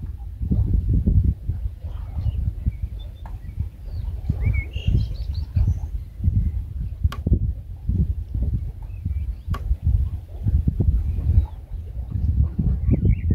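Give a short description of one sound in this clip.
Wind gusts roughly outdoors.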